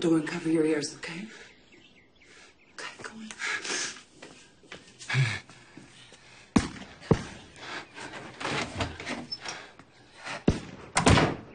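A woman speaks softly and urgently close by.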